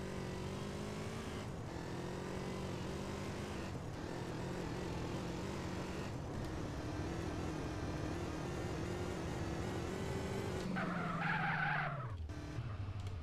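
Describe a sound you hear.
A motorcycle engine roars steadily, then slows and stops.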